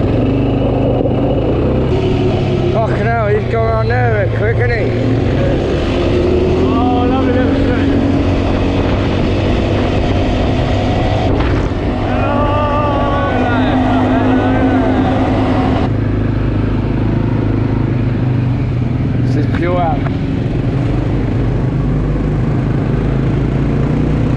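A quad bike engine drones steadily up close.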